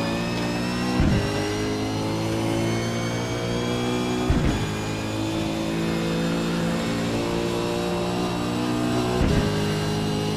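A gearbox clunks sharply as gears change up.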